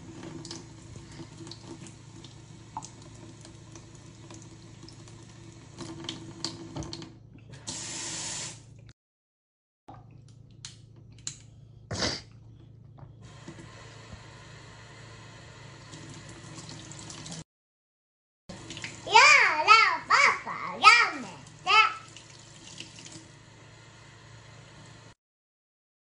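Water runs from a tap and splashes onto hands.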